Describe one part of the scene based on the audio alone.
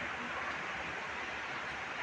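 A ceiling fan whirs steadily.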